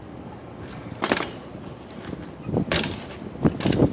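A bike lands with a hard thud on pavement.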